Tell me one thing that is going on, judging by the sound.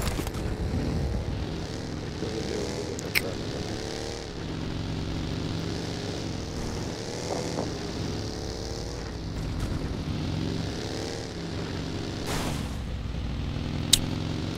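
A buggy engine drones and revs up and down.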